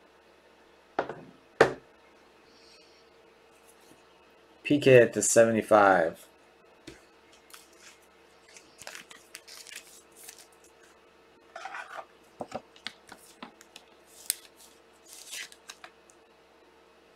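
Plastic card cases click and tap as they are handled.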